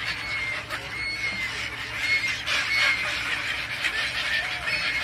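Many gulls call shrilly and constantly.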